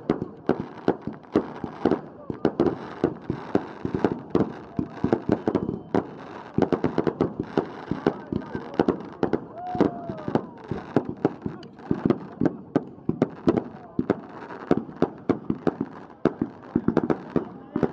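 Firecrackers bang in rapid bursts outdoors.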